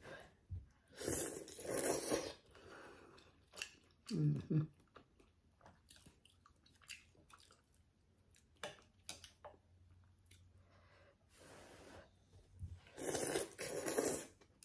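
A woman loudly slurps noodles close by.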